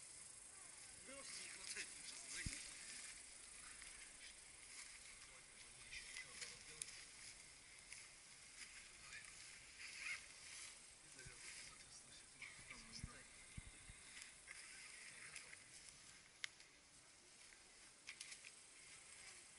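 Wind rustles through the trees outdoors.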